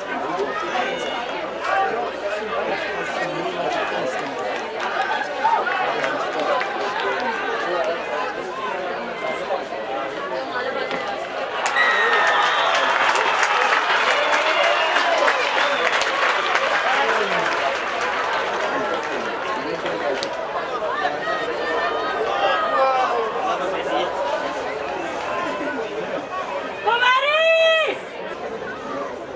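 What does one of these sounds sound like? Young men shout and call to each other outdoors.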